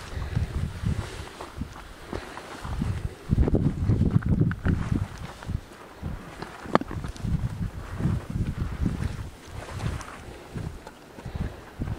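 Footsteps crunch through dry brush and grass.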